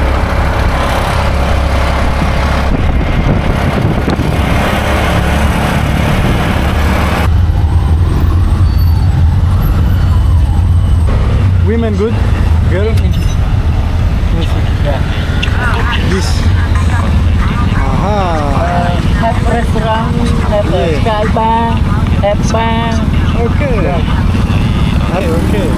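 A small motor vehicle engine rumbles steadily.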